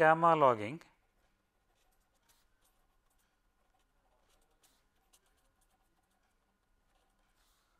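A felt pen squeaks and scratches softly on paper.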